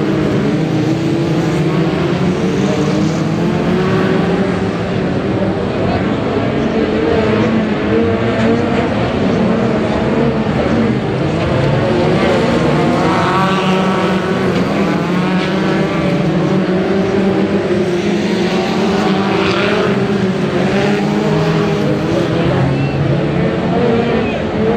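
A crowd of spectators chatters nearby.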